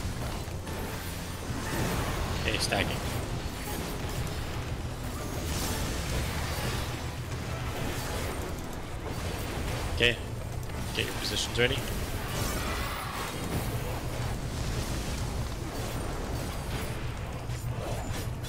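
Magic spells burst and crackle in a battle.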